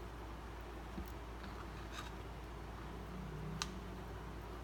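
Fingers handle a small fish with faint soft clicks.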